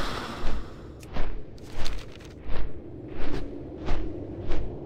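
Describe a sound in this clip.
Large wings flap in slow, steady whooshing beats.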